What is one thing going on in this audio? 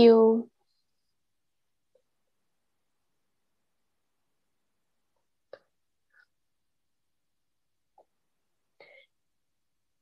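A woman speaks calmly over an online call, with long silences between her words.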